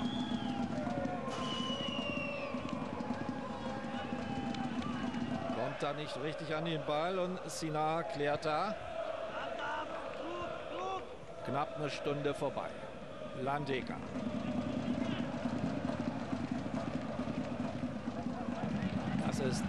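A large stadium crowd cheers and chants outdoors.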